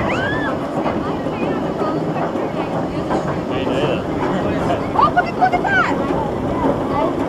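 A roller coaster's lift chain clanks and rattles steadily as the car climbs.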